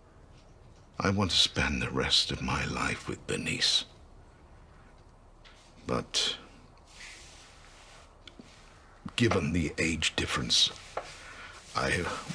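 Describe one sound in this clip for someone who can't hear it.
An older man speaks quietly and with emotion, close by.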